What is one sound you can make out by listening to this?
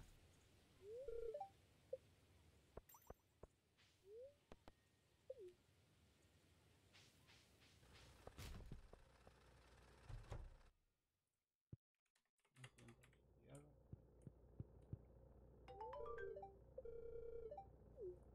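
Short chiming game tones play now and then.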